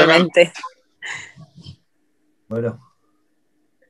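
A woman speaks and laughs softly over an online call.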